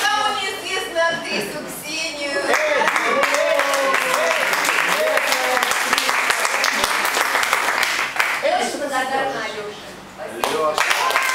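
A woman speaks loudly to the audience from the stage.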